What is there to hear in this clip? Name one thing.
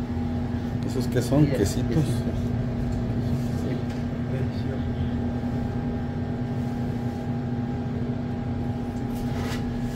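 Metal tongs clink and scrape against dry cookies.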